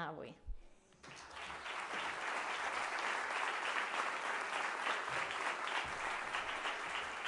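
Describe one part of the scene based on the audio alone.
An audience applauds steadily.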